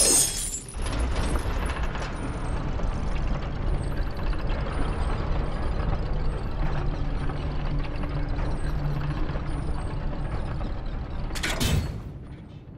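A huge wooden wheel mechanism rumbles and creaks as it turns.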